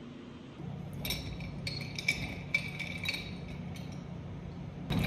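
Ice cubes clink against a glass jar.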